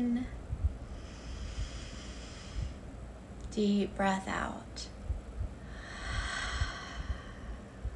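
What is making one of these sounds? A woman breathes in and out deeply.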